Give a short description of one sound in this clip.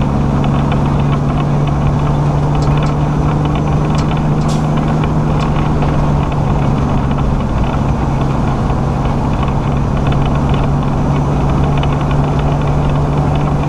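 Wind rushes past a moving vehicle.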